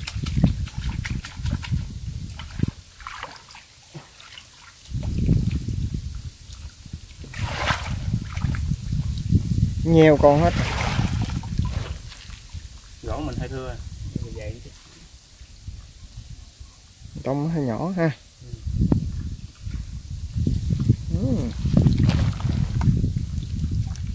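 Muddy water sloshes and splashes as a basket is dipped and shaken in it.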